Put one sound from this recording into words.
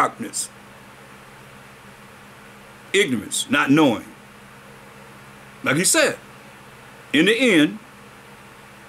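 An older man speaks calmly and slowly, close by, in short phrases with pauses.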